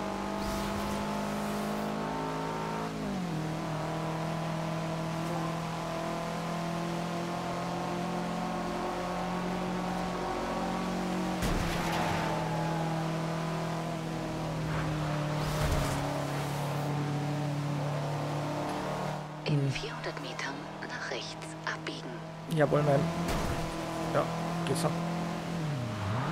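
A car engine roars at high revs, shifting gears as it speeds along.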